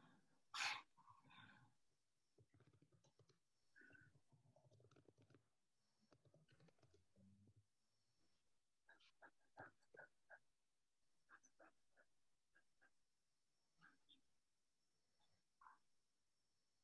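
A paintbrush softly brushes and taps on paper.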